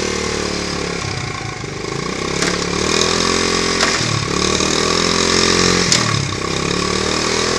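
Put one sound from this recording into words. A small motorcycle engine revs up and drops back several times.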